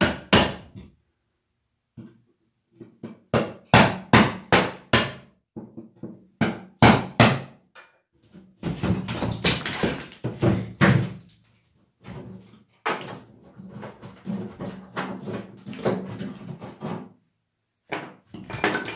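Sharp knocks and scrapes of a tool on a brick wall come in short bursts.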